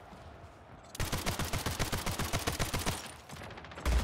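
A rapid-fire video game gun shoots in quick bursts.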